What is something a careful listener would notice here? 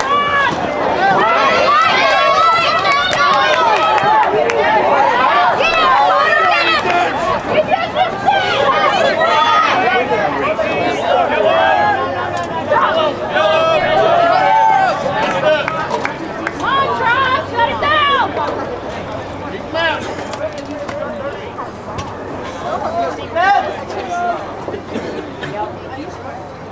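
Young players shout and call out across an open outdoor field.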